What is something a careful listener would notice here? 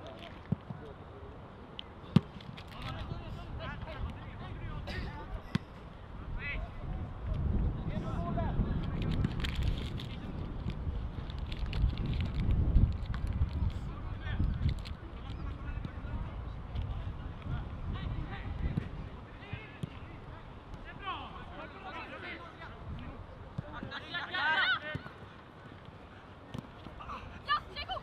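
Young players shout to each other across an open field, far off.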